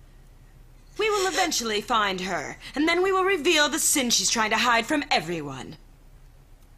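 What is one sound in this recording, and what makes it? A woman speaks tearfully in a trembling voice.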